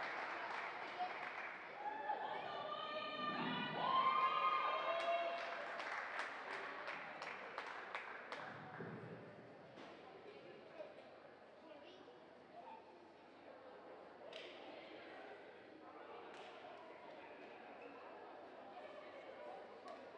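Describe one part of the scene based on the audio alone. A crowd murmurs in the stands.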